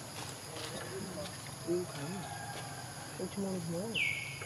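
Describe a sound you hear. A baby monkey squeals in short high cries.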